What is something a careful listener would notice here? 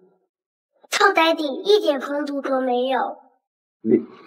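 A young boy speaks with animation, close by.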